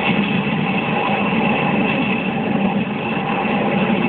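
Assault rifle fire from a video game plays through a television speaker.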